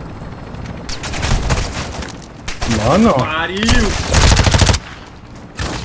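A gun fires a rapid burst of loud shots.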